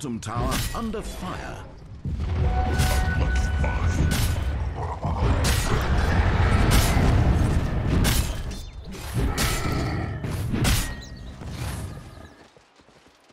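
Game spells and weapon blows crash and clang in a fast fight.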